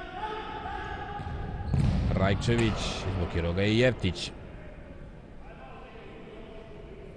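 Players' shoes squeak and thud on a hard indoor court in a large echoing hall.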